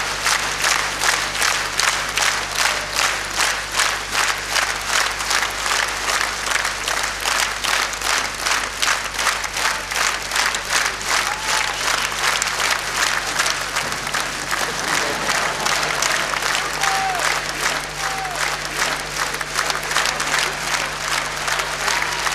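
A large audience claps steadily in time throughout.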